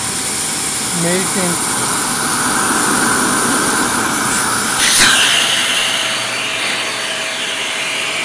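A vacuum cleaner motor runs with a high whine.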